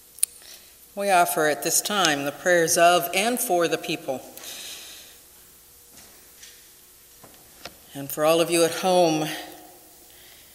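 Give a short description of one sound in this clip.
A middle-aged woman speaks calmly into a microphone in an echoing room.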